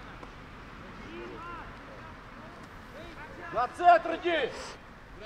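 Young players shout across an open field.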